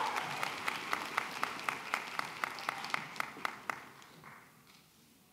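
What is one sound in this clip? An audience applauds in a large hall, then fades.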